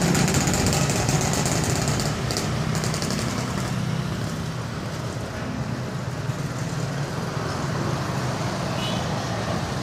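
A motorcycle engine hums as it rides past close by.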